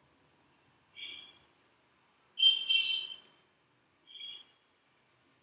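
Onion pieces drop with soft knocks into a plastic food processor chute.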